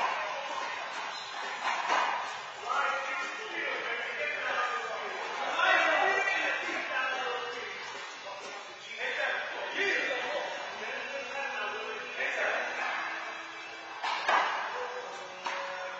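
Men talk and call out across an echoing court.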